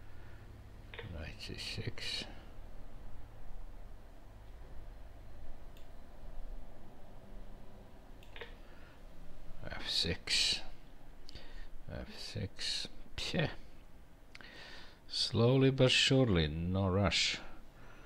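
A middle-aged man speaks calmly and thoughtfully into a headset microphone, with pauses.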